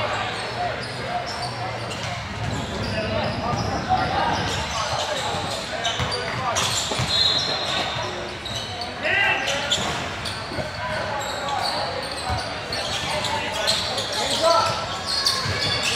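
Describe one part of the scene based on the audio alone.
A crowd of spectators and players chatter and call out in a large echoing hall.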